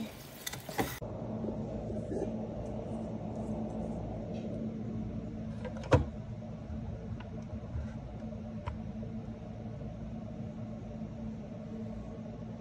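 An electric can opener motor hums steadily.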